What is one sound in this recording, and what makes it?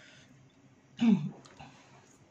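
A woman lets out a short pleased hum close by.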